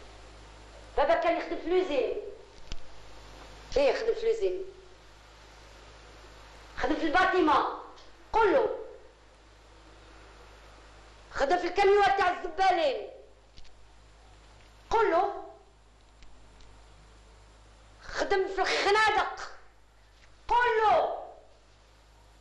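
A woman speaks in short, firm phrases with pauses between them.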